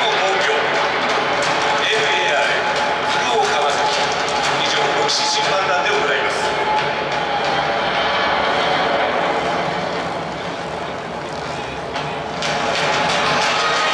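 A large stadium crowd chants and sings loudly together.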